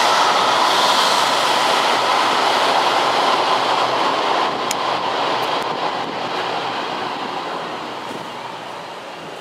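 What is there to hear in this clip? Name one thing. A train rushes past close by with a loud roar that slowly fades.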